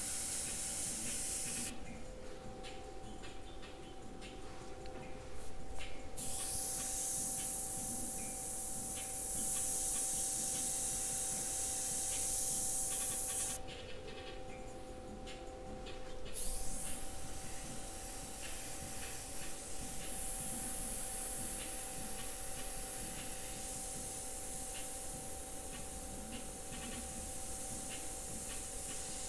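An airbrush hisses in short and long bursts of spray.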